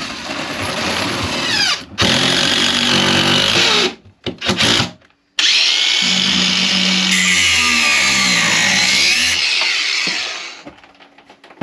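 A cordless drill whirs in loud bursts, speeding up and slowing down.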